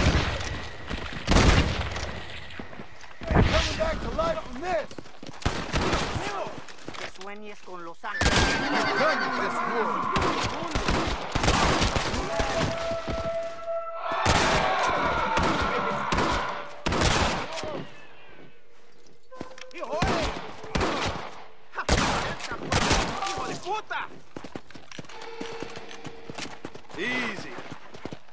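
Gunshots crack sharply, over and over.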